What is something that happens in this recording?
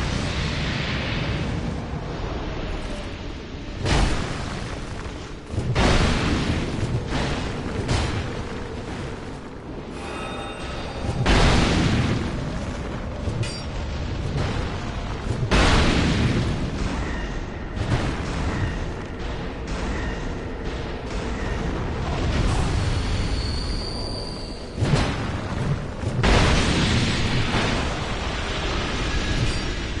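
Swords clash and strike armour in a fight.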